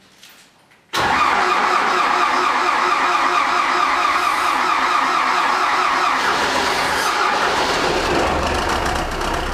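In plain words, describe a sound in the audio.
A tractor's diesel engine starts up and runs with a loud, steady rumble.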